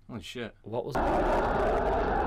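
A jet engine roars.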